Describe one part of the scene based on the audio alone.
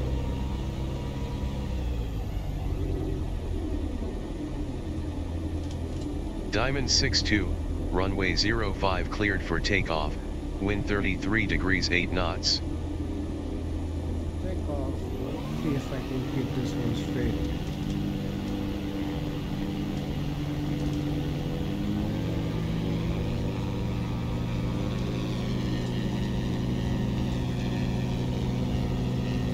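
A small propeller plane's engine drones steadily, then roars louder as the plane speeds down the runway.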